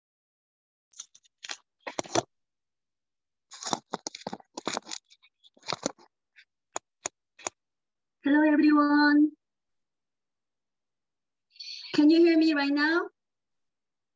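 A woman speaks briefly and cheerfully through an online call.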